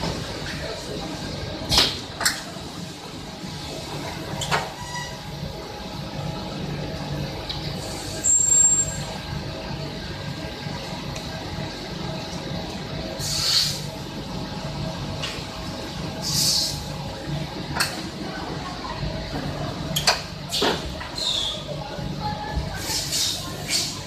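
Factory machinery hums steadily nearby.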